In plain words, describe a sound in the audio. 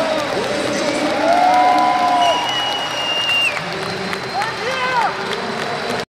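Men shout loudly in a large echoing hall.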